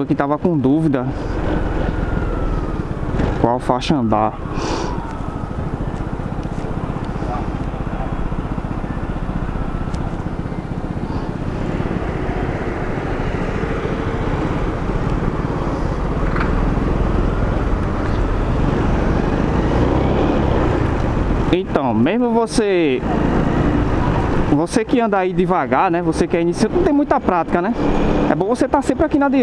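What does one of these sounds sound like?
A scooter engine hums steadily.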